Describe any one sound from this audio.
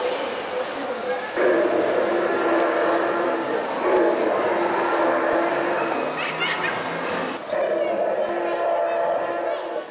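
People murmur in a large echoing hall.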